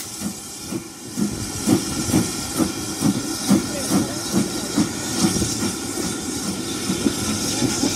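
A steam locomotive chuffs in steady, rhythmic puffs as it pulls away.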